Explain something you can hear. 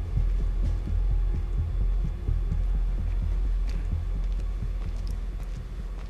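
Footsteps approach slowly on a hard floor.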